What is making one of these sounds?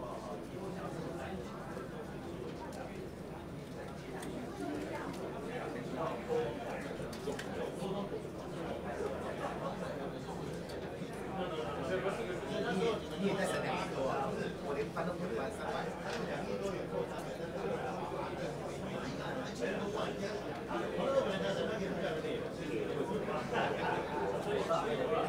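A crowd of men and women chatter at once in a large room.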